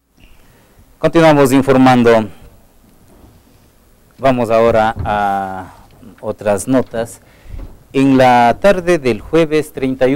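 A man speaks calmly into a close microphone, reading out.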